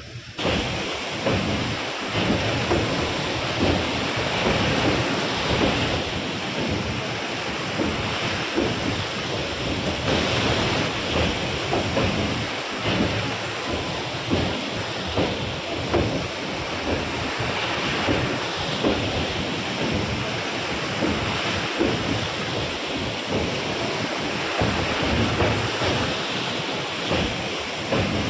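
Floodwater rushes and churns steadily.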